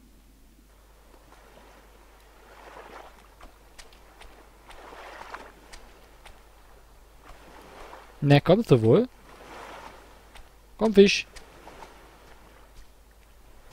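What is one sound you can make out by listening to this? Small waves wash softly onto a sandy shore.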